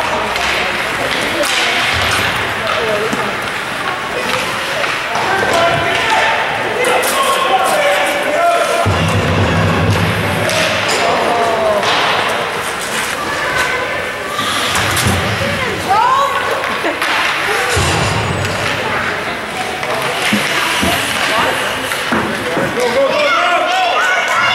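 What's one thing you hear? Spectators shout and cheer in an echoing arena.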